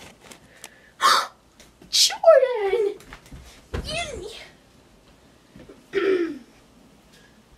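A young woman talks loudly and with animation close by.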